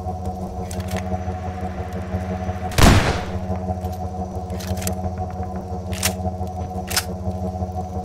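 A shotgun is loaded and its metal parts click and clack.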